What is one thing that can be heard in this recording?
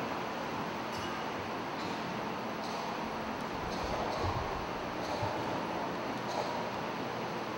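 Metal and glass vessels clink softly.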